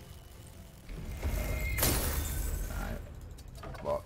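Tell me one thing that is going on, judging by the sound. A magic spell bursts with a crackling blast.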